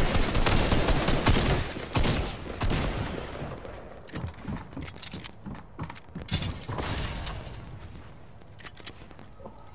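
Building pieces clatter and thud into place in quick succession.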